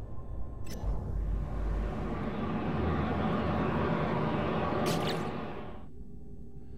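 A spaceship engine roars steadily.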